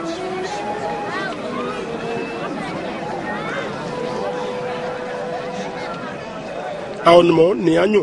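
A crowd of people murmurs and chatters outdoors.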